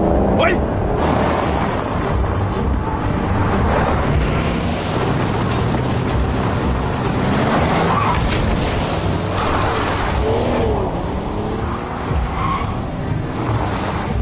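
Tyres skid and hiss across snow.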